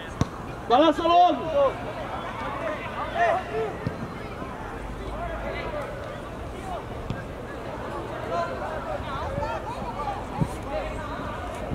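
Young male players shout and call out to each other across an open outdoor pitch.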